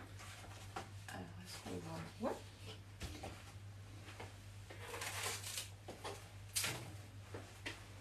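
A woman talks with animation close by, in a small echoing room.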